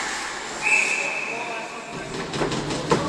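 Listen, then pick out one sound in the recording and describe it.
A referee's whistle blows sharply in a large echoing rink.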